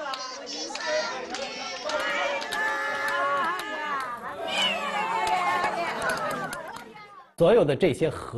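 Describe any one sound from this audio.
Several women and a child sing together cheerfully.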